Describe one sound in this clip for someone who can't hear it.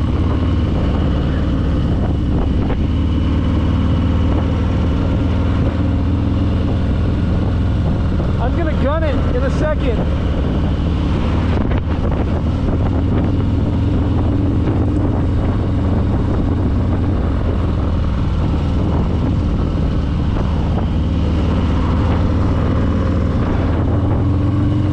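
A motorcycle engine rumbles steadily up close as it rides along.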